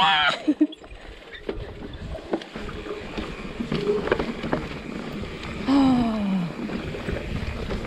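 Dry grass brushes and swishes against a bicycle.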